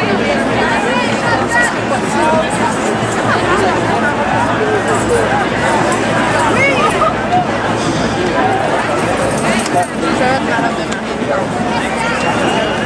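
A large crowd of people chatters and calls out all around, outdoors.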